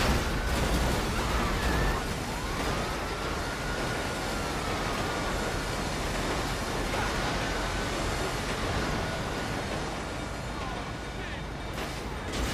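Wheels screech against the rails.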